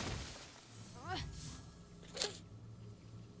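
An electric blast crackles sharply.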